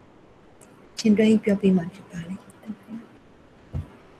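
A woman speaks through a microphone, as in an online call.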